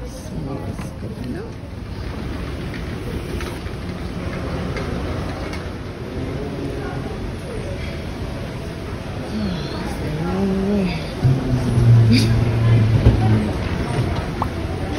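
A moving walkway hums and rumbles steadily.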